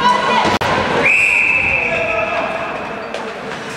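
A referee's whistle blows one long blast.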